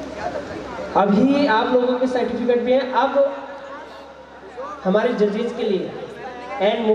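A man speaks loudly into a microphone through loudspeakers, with animation.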